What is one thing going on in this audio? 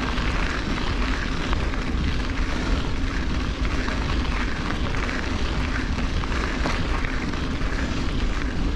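Bicycle tyres crunch steadily over a gravel track.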